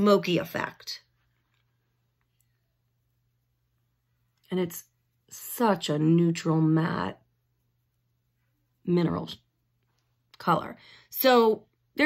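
A woman talks calmly and close by, in short bursts with pauses.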